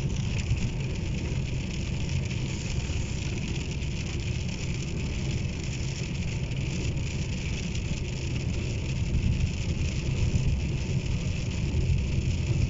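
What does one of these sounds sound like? A car engine rumbles low inside the car.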